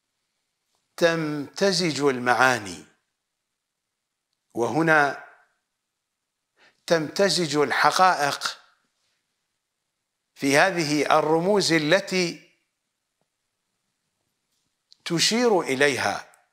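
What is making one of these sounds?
A middle-aged man speaks with animation into a close microphone, in bursts with silent pauses.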